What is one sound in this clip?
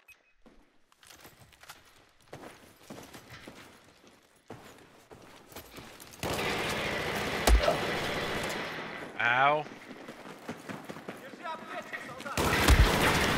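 Gunshots crack and rattle in quick bursts.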